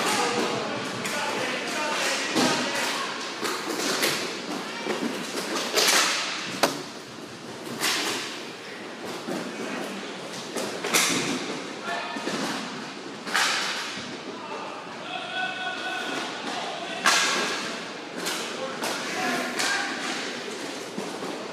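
Plastic wheels of inline skates scrape and roll across a hard floor.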